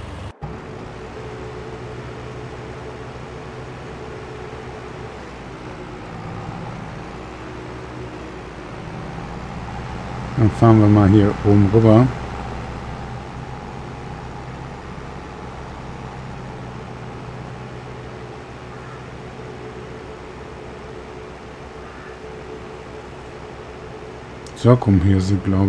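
A tractor engine hums steadily as it drives along a road.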